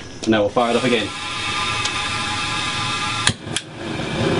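Gas hisses steadily from a pipe.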